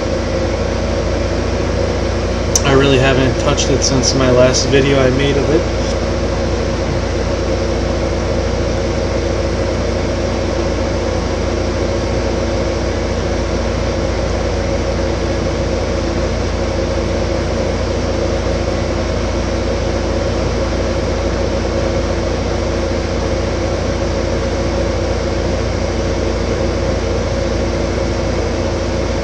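A tractor engine hums steadily.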